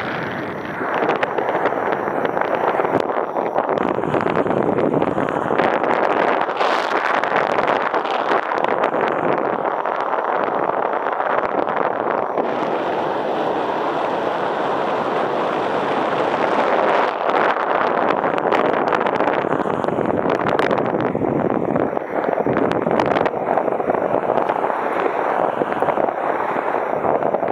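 Strong wind rushes and buffets steadily.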